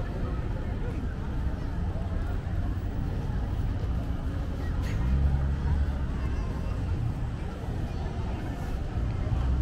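Men, women and children chatter softly nearby outdoors.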